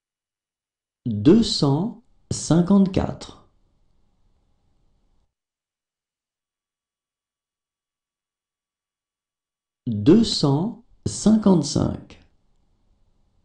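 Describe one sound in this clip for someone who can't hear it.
A man reads out numbers clearly and calmly, close to a microphone.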